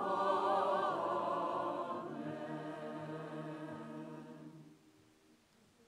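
A choir sings and holds a final chord in a large echoing hall.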